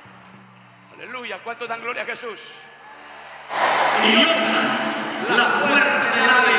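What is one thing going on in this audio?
A man preaches loudly and passionately into a microphone, heard through loudspeakers in a large echoing hall.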